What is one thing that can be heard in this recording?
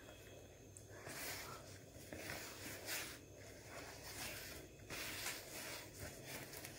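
A spoon scrapes and squelches through thick dough in a bowl.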